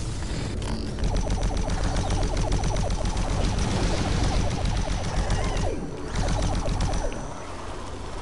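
A plasma gun fires rapid buzzing bursts.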